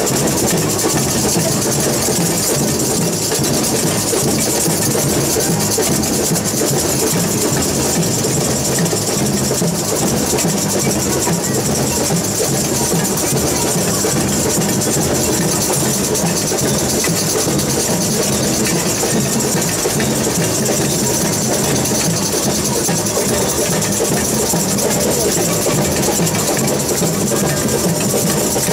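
Shakers rattle along in a quick rhythm.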